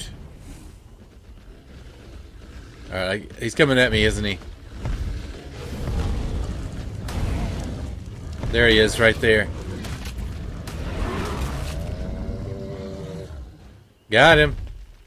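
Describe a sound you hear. A fire-breathing creature blasts a roaring gush of flame.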